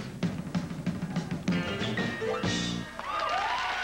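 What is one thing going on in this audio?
A drummer plays a drum kit with crashing cymbals.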